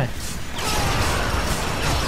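A rifle fires a burst of shots.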